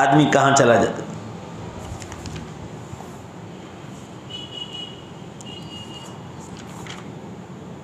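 Paper pages rustle as a man turns them.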